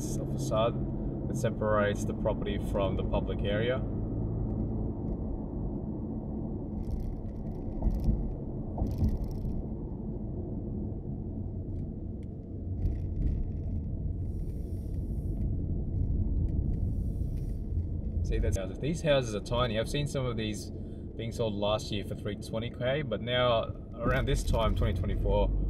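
A car engine hums with a steady low road rumble from inside the car.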